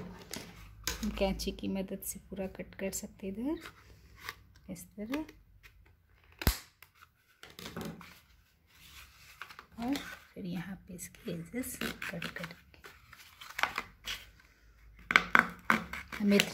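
Scissors snip through thin cardboard.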